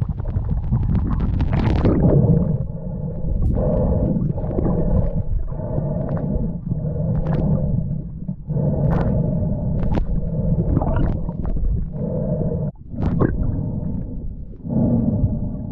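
Water swirls and gurgles, heard muffled from underwater.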